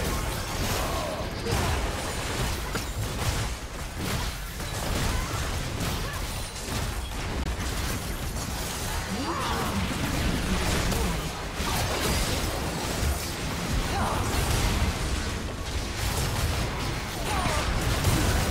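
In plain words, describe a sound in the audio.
Magic blasts and impacts burst and crackle over and over in a busy fight.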